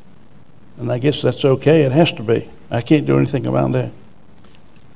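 A middle-aged man speaks calmly into a microphone, reading out.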